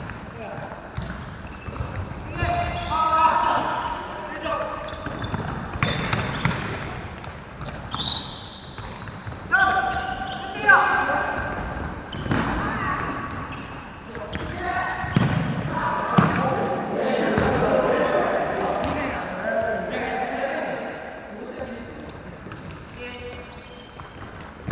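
Players call out and shout to each other in a large echoing hall.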